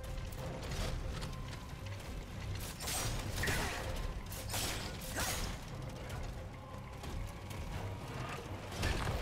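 Swords clash and slash in quick bursts.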